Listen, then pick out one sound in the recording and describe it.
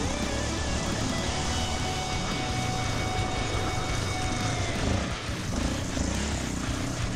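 A dirt bike engine revs and drones up close.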